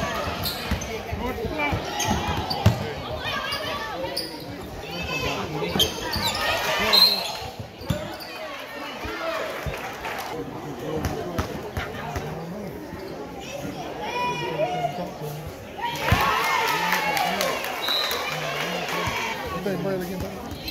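A basketball bounces on a wooden floor.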